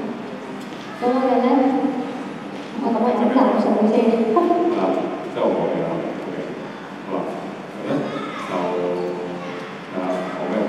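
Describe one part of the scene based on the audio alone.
A young woman sings into a microphone through a loudspeaker, in a large echoing hall.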